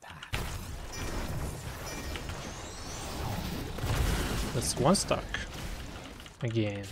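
Fantasy battle effects crackle and whoosh in a video game.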